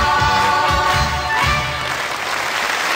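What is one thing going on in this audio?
A woman sings loudly.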